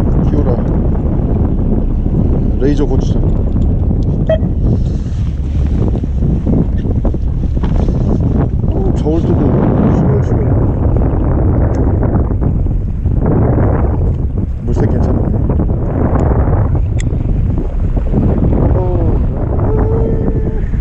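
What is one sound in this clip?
Wind blows steadily and buffets close by, out on open water.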